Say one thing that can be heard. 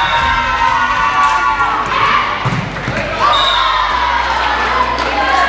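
A volleyball is struck with dull smacks.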